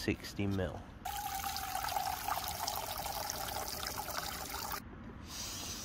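Water pours into a metal pot.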